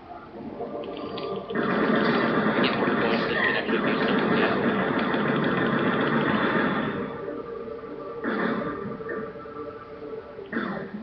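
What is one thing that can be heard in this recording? Muffled game sound plays from a television speaker in the room.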